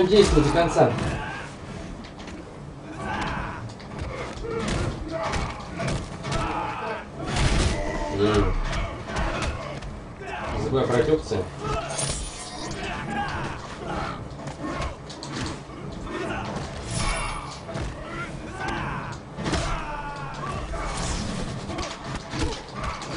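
Fighters grunt and yell as they strike.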